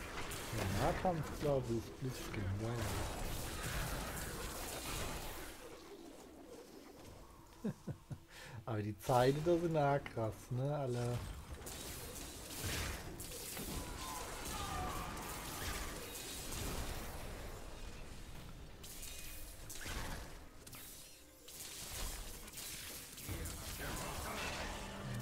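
Spells crackle and explode with bursts of fighting noise.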